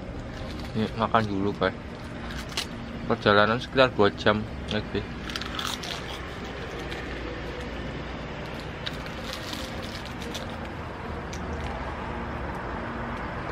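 A young man chews and munches food.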